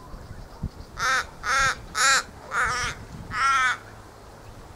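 A crow caws loudly several times, close by.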